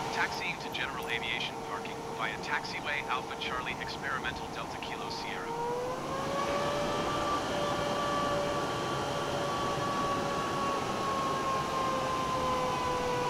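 A jet engine whines steadily as an aircraft taxis, its pitch rising once and then holding.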